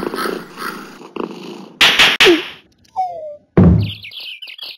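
A cartoon cat tumbles to the floor with a thud.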